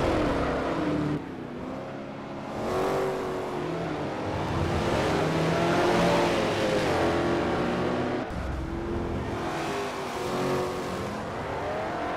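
Racing car engines roar and rev up and down loudly.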